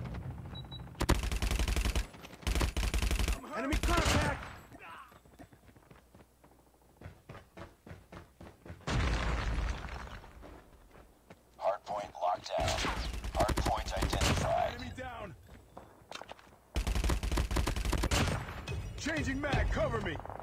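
Rapid gunfire bursts in a video game.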